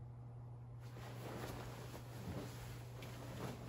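Bedding rustles.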